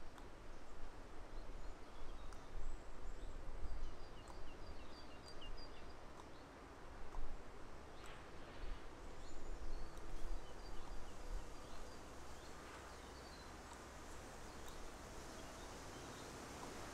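Wind rumbles outdoors in gusts.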